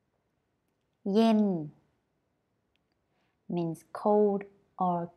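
A young woman speaks clearly and slowly into a close microphone, pronouncing single words.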